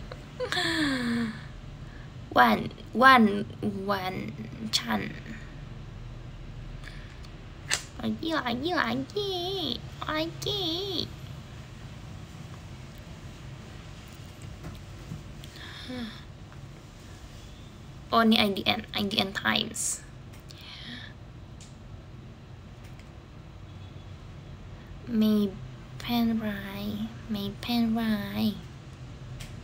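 A young woman speaks softly and casually, close to a microphone, in short bursts with pauses.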